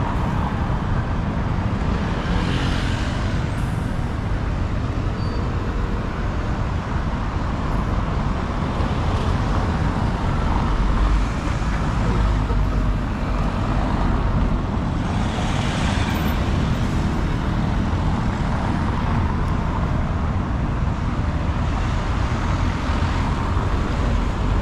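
Cars drive past close by, tyres rumbling on cobblestones.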